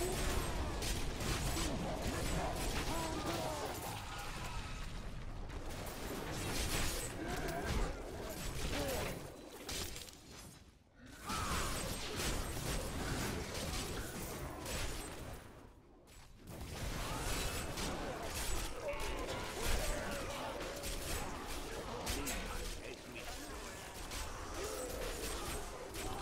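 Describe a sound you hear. Magic blasts crackle and boom in a fierce fight.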